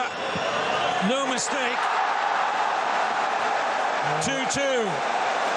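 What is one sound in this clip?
A large stadium crowd roars loudly throughout.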